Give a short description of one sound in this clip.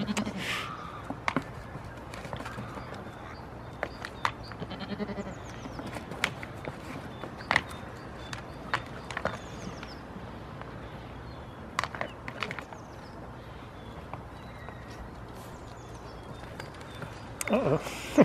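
Goat hooves knock on wooden boards.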